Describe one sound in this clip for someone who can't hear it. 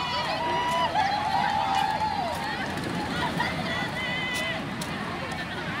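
A crowd of children and adults chatters and calls out at a distance outdoors.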